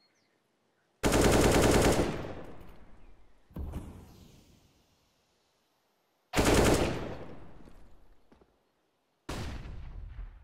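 A rifle fires several loud rapid bursts that echo and fade.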